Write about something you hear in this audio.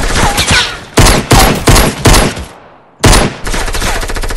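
Pistol shots ring out in quick bursts.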